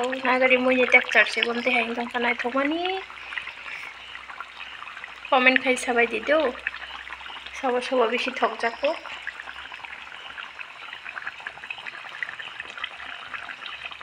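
A pot of stew bubbles softly as it simmers.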